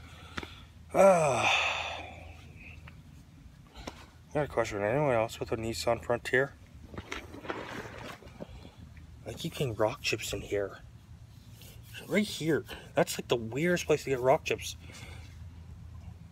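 A young man talks casually, close up.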